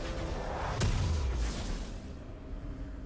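A shimmering magical whoosh rings out and fades.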